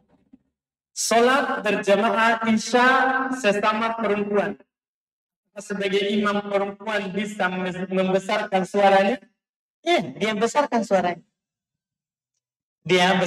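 A man speaks calmly and close into a headset microphone.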